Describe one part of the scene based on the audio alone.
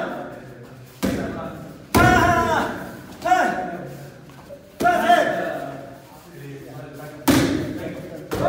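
Kicks smack sharply against a padded target in an echoing hall.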